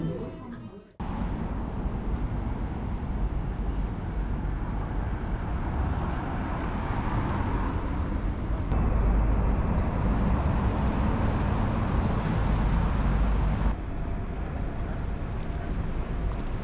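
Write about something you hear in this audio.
City traffic hums and rushes past outdoors.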